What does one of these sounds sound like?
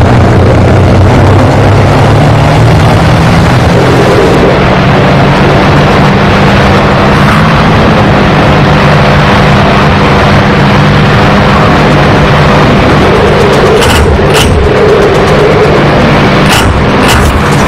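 A propeller plane's engine drones steadily and loudly.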